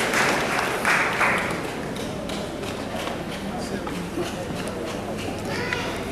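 A crowd murmurs softly in an echoing hall.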